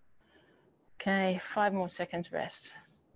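A woman speaks with animation through a microphone, close by.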